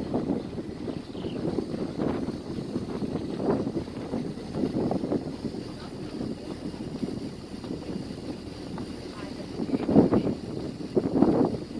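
Wind buffets the microphone in rough gusts outdoors.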